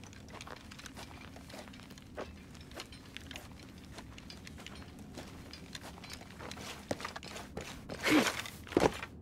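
Footsteps crunch on loose gravel and rock.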